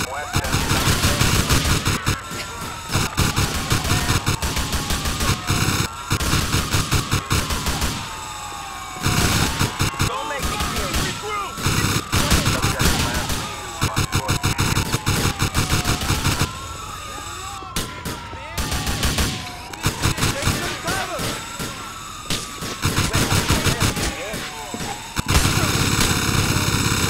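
A police siren wails up and down nearby.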